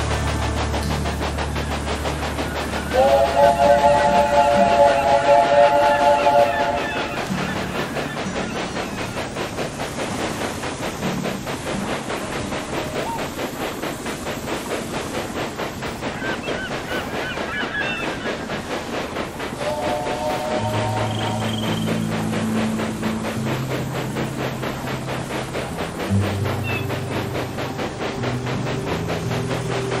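A steam locomotive chugs steadily along the track.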